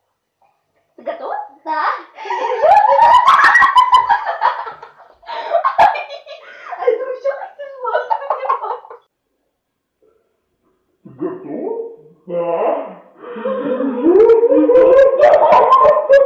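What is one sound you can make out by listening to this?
Young girls laugh loudly.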